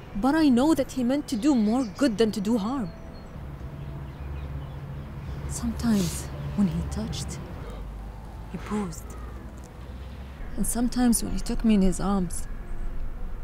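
A woman speaks emotionally, close by.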